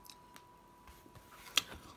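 A hand pats a cardboard box.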